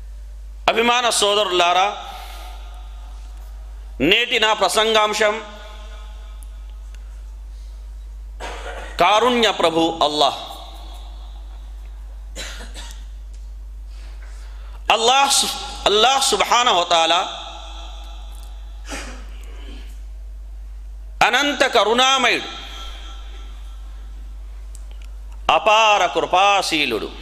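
A man speaks into a microphone in short, measured phrases, with pauses between them.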